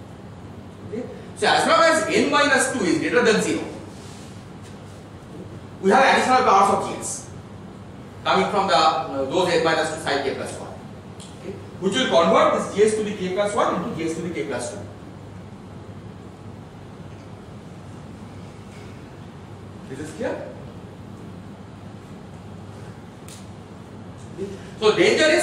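A man lectures, speaking calmly in bursts with pauses.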